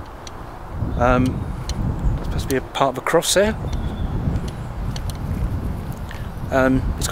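A middle-aged man speaks close by, in short bursts.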